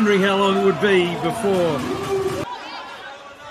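Young women shout and cheer loudly close by.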